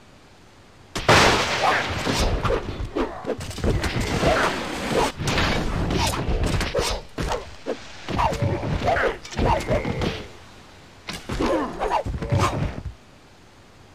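Weapons clash in a melee battle.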